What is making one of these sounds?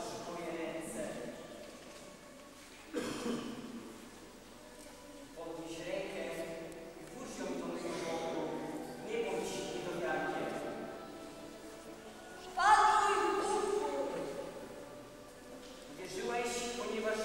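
Young children sing together in a hall with some echo.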